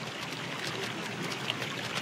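Water splashes and trickles close by.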